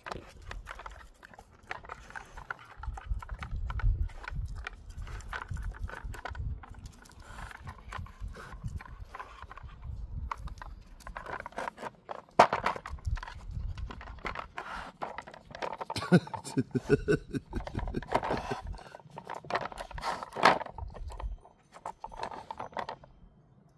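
A dog sniffs and snuffles at a rubber toy.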